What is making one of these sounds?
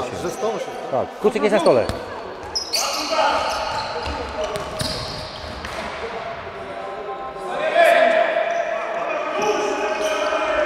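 Shoes squeak on a hard floor in a large echoing hall.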